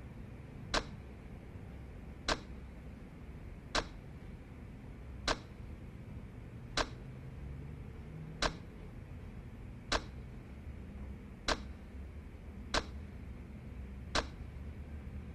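Short clicks sound at a steady pace.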